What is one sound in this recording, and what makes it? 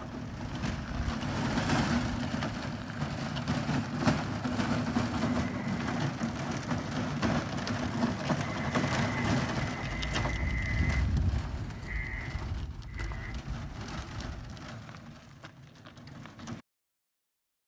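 A cart's wheels crunch and rumble over gravel.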